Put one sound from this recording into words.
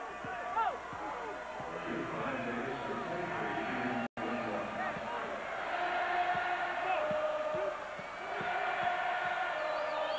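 A large crowd roars and cheers in an echoing arena.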